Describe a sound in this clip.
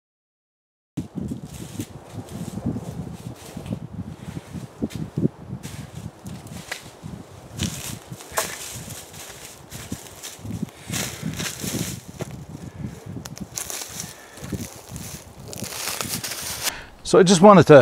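Footsteps crunch and rustle on dry leaves.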